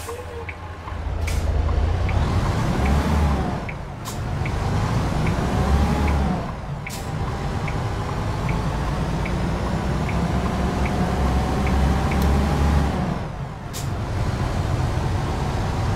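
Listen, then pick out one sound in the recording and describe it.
A truck engine roars and revs up repeatedly as the truck pulls away and shifts gears.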